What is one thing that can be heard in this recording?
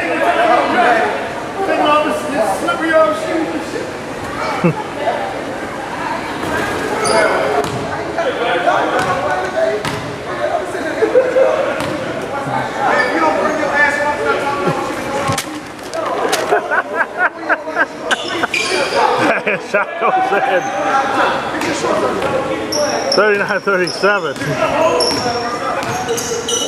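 Young men talk and call out in a large echoing gym.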